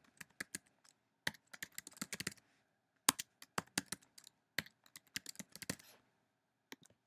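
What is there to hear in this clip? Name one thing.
Keys click rapidly as someone types on a keyboard.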